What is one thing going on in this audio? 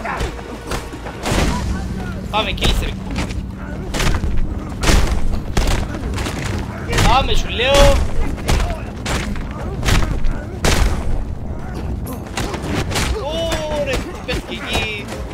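Heavy punches and kicks land with thuds in a fight.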